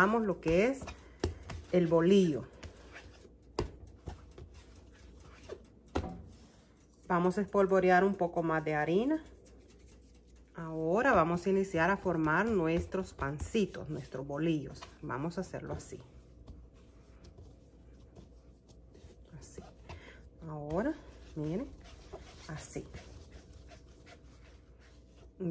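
Hands softly pat and press dough on a smooth surface.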